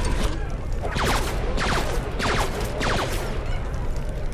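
Laser blasts zap in quick bursts.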